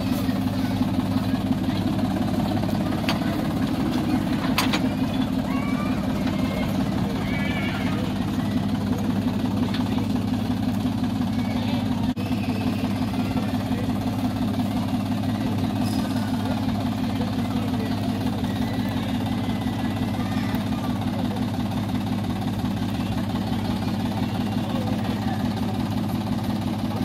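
A small locomotive engine runs with a steady low chugging throb.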